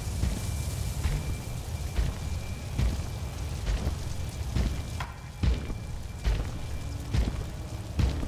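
Footsteps thud quickly on ground and stone.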